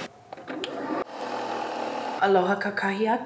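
A coffee machine hums as it brews.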